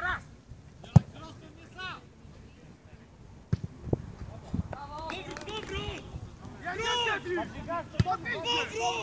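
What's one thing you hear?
A football thuds sharply as it is kicked.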